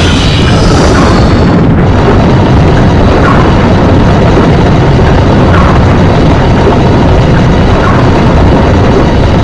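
A heavy stone block scrapes and grinds across a wooden floor.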